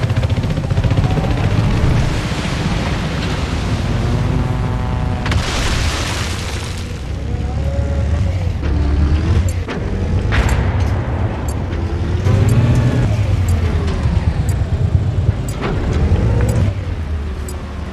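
A tank engine rumbles low and steadily.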